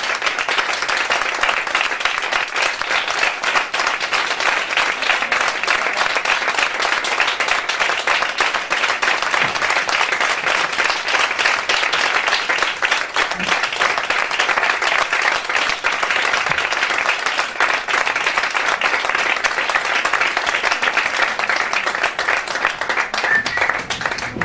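A crowd applauds steadily and loudly.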